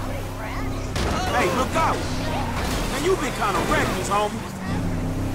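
Tyres screech as a pickup truck skids around a corner.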